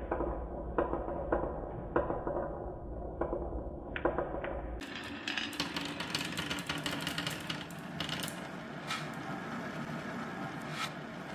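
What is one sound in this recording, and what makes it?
Wooden marbles roll and rattle along a winding wooden track.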